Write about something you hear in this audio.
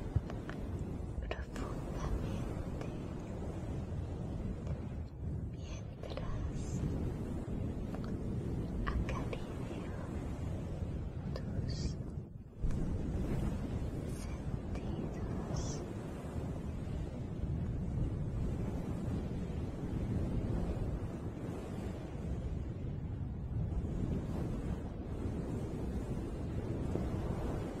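A woman whispers softly close to the microphone.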